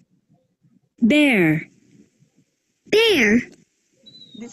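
A woman speaks in a lively sing-song voice through an online call.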